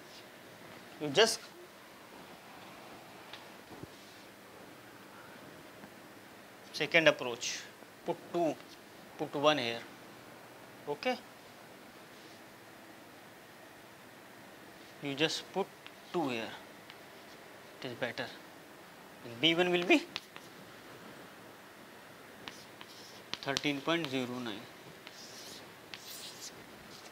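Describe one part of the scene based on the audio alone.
A young man speaks calmly in short bursts, close to a microphone, with pauses between phrases.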